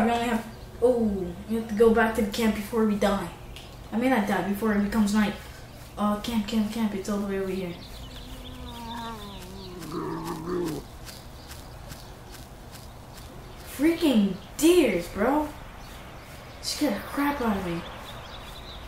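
A young boy talks with animation into a headset microphone.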